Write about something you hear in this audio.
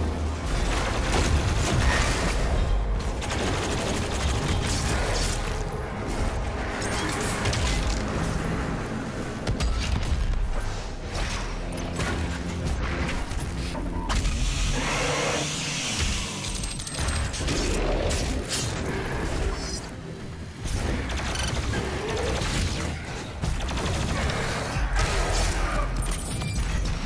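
A heavy gun fires in rapid, booming bursts.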